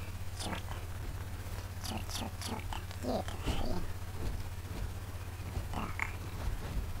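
A young man talks casually into a close microphone.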